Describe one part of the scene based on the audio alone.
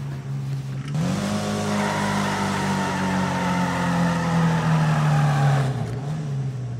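A sports car engine roars as it accelerates hard.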